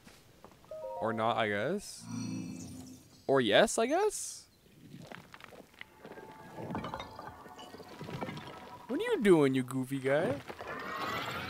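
A game robot gives out warbling, gliding electronic tones.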